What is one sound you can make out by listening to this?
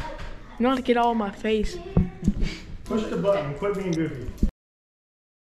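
A boy makes silly noises, close by.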